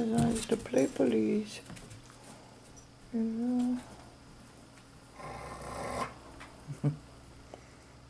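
Dogs scuffle and paw on a couch.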